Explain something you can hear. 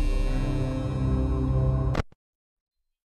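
Eerie music plays.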